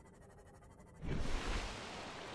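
Water splashes and rushes as a submarine breaks the surface.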